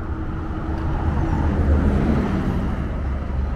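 A bus engine rumbles as the bus drives past close by.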